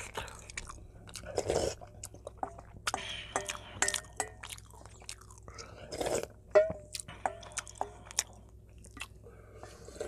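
A metal spoon clinks against a metal bowl.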